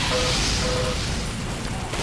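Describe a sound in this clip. A flamethrower roars.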